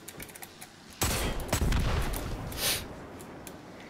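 A gun fires loud shots that echo.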